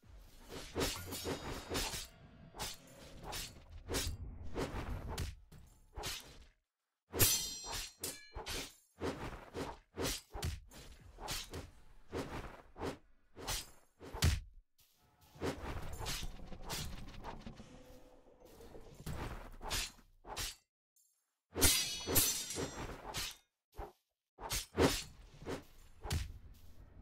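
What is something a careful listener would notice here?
Sword slashes and hits strike a creature again and again.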